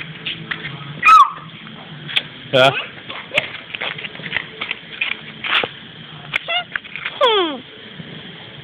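A young child squeals and chatters excitedly close by.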